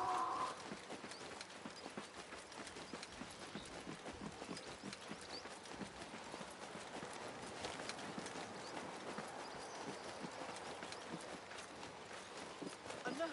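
Footsteps run quickly over dusty ground.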